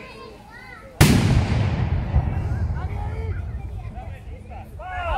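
A volley of muskets fires loudly outdoors, the bangs rolling away in echoes.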